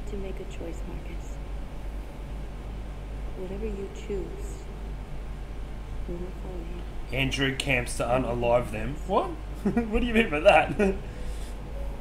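A young woman speaks softly and earnestly close by.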